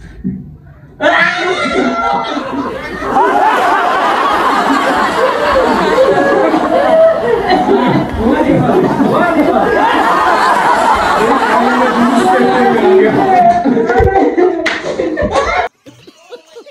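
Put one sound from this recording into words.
Several young men laugh loudly nearby.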